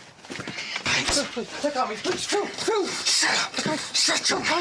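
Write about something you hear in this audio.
A middle-aged man shouts angrily up close.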